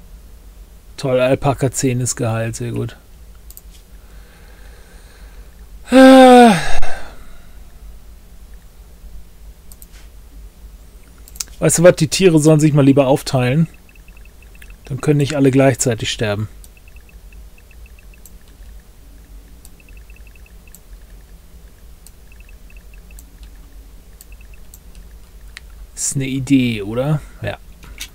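An elderly man talks calmly in bursts, close to a microphone.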